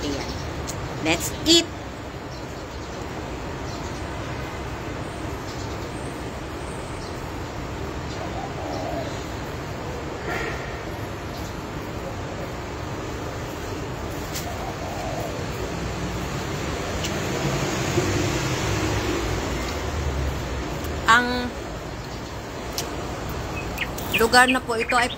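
A middle-aged woman speaks close by, casually, in short bursts.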